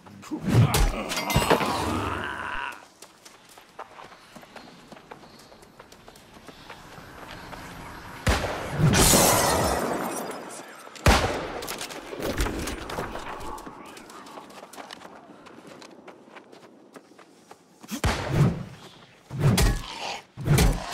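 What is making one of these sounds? A magic blast bursts with a crackling whoosh.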